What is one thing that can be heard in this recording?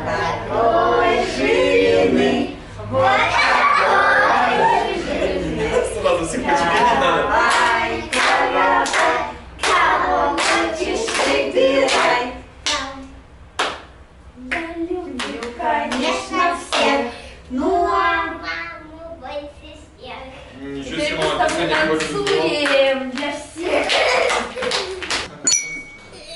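A woman sings a children's song.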